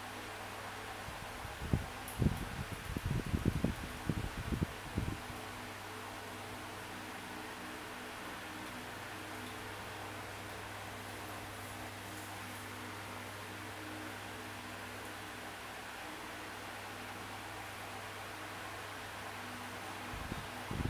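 Soft game music plays through a small tablet speaker.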